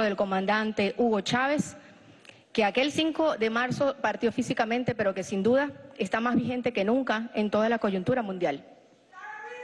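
A woman speaks with animation through a microphone in a large hall.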